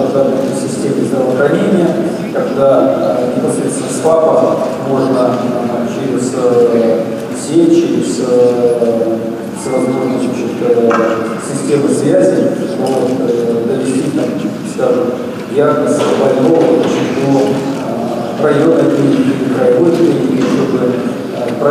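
A middle-aged man speaks steadily into a microphone, heard through loudspeakers in a large echoing hall.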